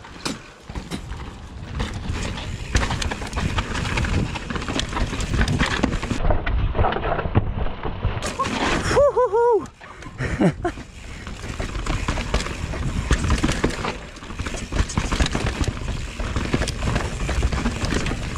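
A bike's frame and chain clatter over bumps.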